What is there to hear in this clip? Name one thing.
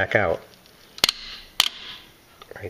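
Metal parts click sharply as hands work a throttle linkage.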